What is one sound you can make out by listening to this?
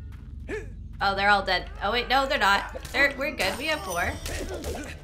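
A young woman talks with animation close to a microphone.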